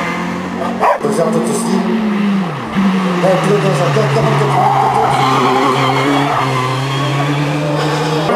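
A racing car engine screams at high revs and drops in pitch between gear shifts.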